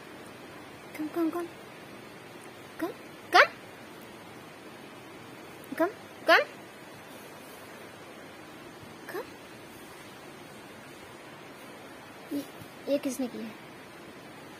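A small dog gives short, high, rising yelps and whines now and then.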